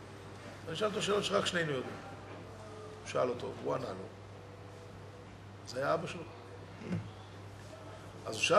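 A middle-aged man speaks with emphasis into a microphone, in bursts with pauses.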